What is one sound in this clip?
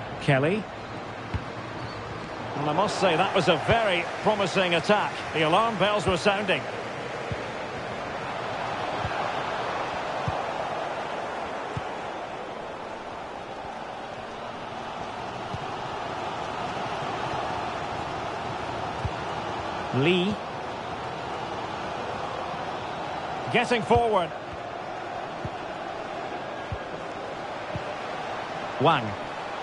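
A large crowd murmurs and cheers steadily in a big stadium.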